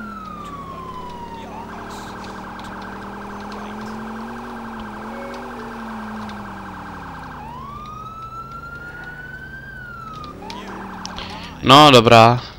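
A police siren wails and yelps.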